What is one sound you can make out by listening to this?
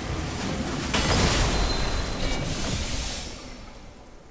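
Electricity crackles and bursts loudly.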